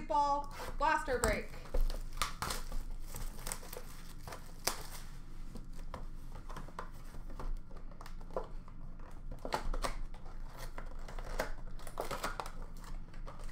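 Cardboard boxes rustle and knock as hands shuffle them.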